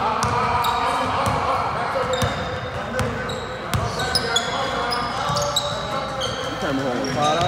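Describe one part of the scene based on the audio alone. A crowd of young people chatters and calls out in the background.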